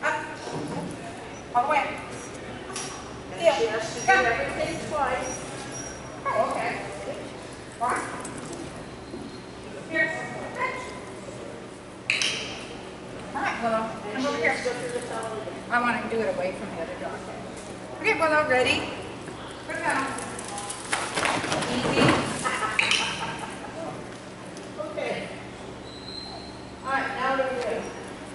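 A woman calls out encouragement and commands with animation in a large echoing hall.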